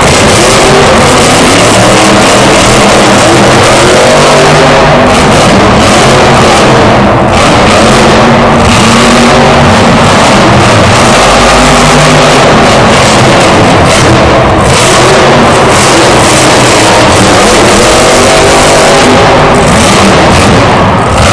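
A monster truck engine roars loudly.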